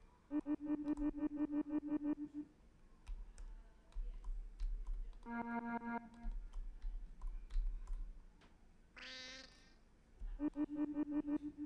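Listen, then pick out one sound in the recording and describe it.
Rapid, pitched electronic blips chirp in quick bursts.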